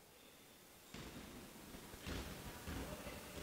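A basketball bounces on a wooden floor.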